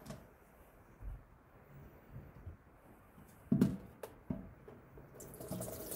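Plastic containers clatter in a sink.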